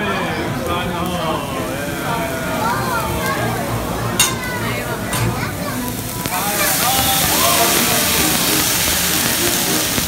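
A flame roars up from a grill with a loud whoosh.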